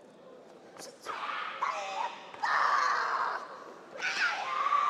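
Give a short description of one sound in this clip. Young women shout sharply together in a large echoing hall.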